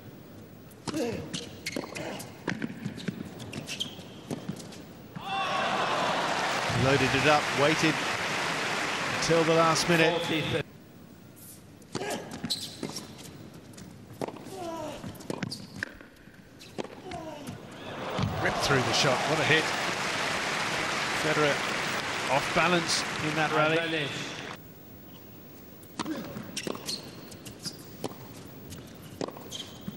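Tennis balls are struck with sharp pops in a rally.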